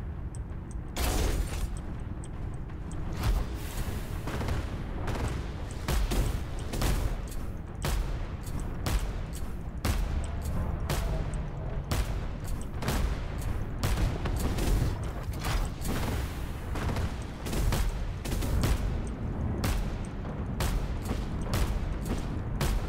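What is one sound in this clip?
Guns fire in rapid bursts of sharp bangs.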